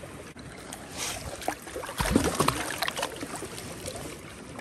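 Water splashes as a hand dips a rock into it.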